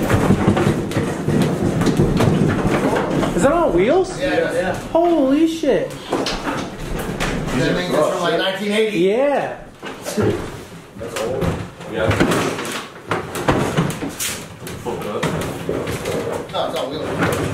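A heavy wooden cabinet scrapes and thumps as it is moved across the floor.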